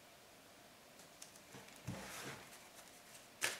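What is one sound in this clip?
Playing cards slide and rustle across a table.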